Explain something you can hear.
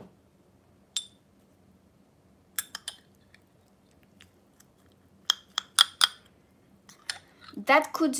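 A metal spoon clinks against a ceramic cup.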